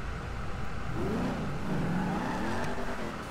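A car engine revs as the car pulls away.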